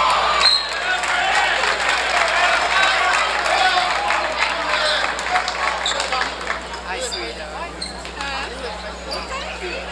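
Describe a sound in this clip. A large crowd cheers and chatters loudly in an echoing gym.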